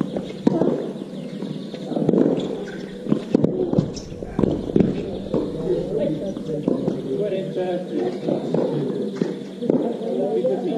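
Tennis balls are struck hard with rackets in a rally.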